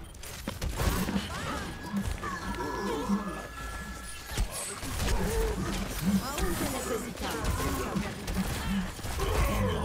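Blasts from a video game boom.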